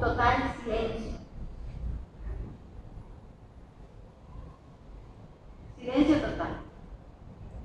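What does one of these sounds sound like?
A young woman speaks into a microphone over a loudspeaker in a large echoing hall.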